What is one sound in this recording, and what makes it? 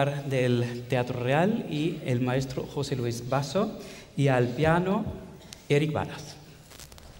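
A man speaks calmly into a microphone in a large hall.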